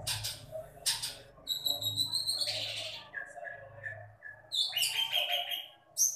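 A small bird chirps and whistles in quick bursts nearby.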